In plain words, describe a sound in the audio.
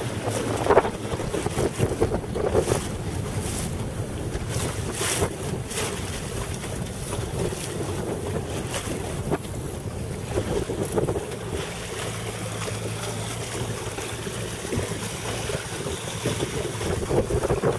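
Small waves lap and splash against a boat's hull.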